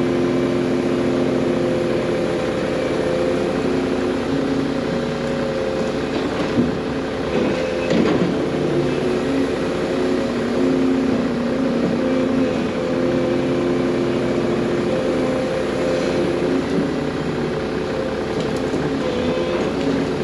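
A large diesel engine rumbles and whines steadily close by, rising and falling in pitch as it works.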